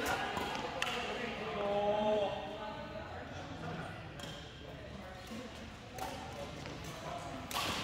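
Badminton rackets smack shuttlecocks with sharp pops.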